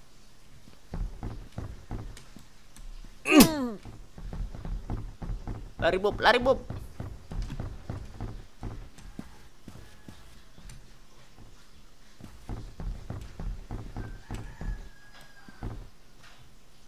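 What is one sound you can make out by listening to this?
Quick footsteps patter across a wooden floor.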